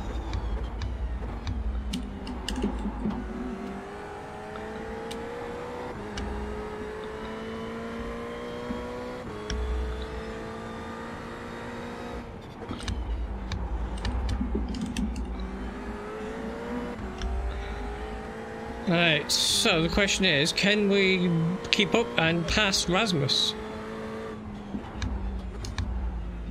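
A racing car engine roars, rising in pitch as it revs and dropping with each gear change.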